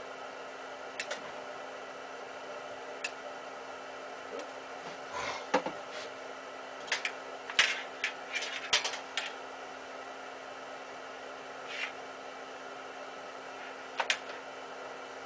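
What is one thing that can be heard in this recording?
Metal parts of a light fixture click and clatter as a man works on them.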